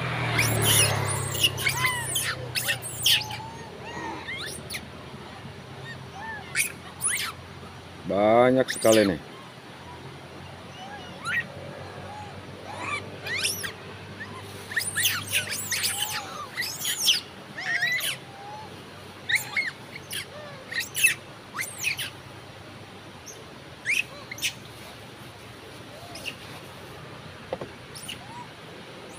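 Monkeys squeak and chirp nearby, on and off.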